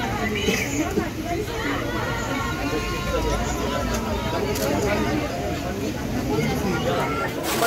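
Several men and women talk over one another in a lively crowd nearby.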